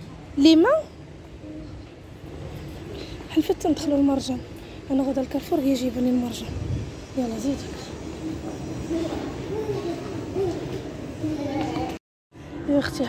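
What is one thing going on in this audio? A young girl chatters and squeals close by.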